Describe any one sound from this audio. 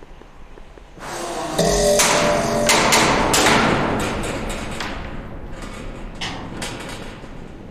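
Tin cans and metal junk clatter and jangle on a swinging line.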